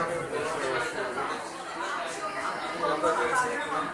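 Several adults and children chatter nearby.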